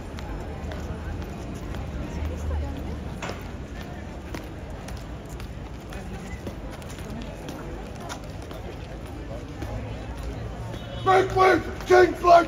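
Heavy boots strike the pavement in a slow, steady march.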